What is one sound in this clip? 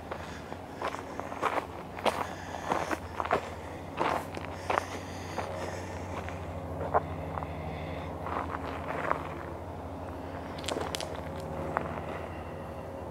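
A freight train rumbles past steadily at close range.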